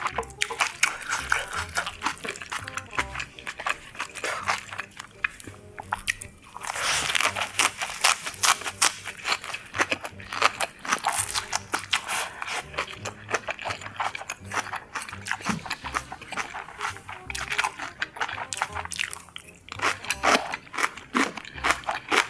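A young woman chews food loudly and wetly close to a microphone.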